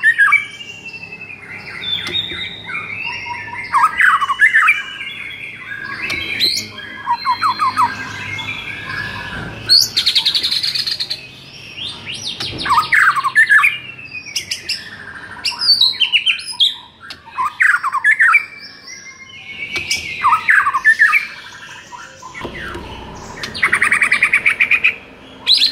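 A songbird sings loud, varied whistling phrases and trills close by.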